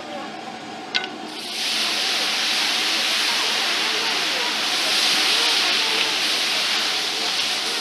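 Water pours from a kettle onto a hot griddle.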